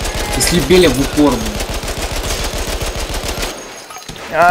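An automatic gun fires rapid bursts of shots.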